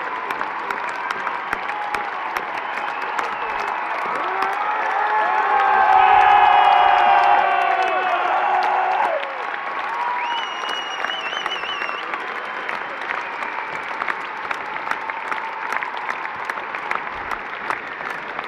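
Concert music plays loudly through big loudspeakers.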